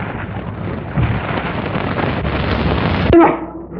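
Stone blocks crash and rumble as they fall.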